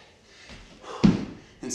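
A soft thump sounds on a wooden floor.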